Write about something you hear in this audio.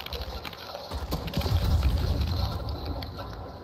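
A blast booms close by.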